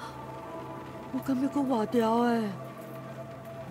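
A young boy speaks quietly and weakly.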